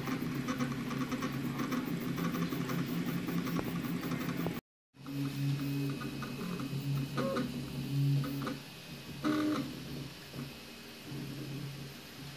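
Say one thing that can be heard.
Stepper motors whine and buzz in shifting tones as a 3D printer moves.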